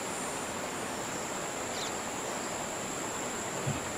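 Water splashes as a fish is pulled out.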